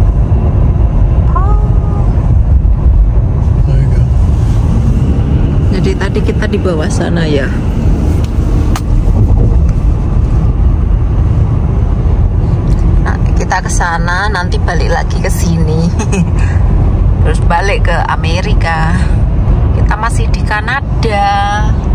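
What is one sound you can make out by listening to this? A car drives steadily with a low road rumble.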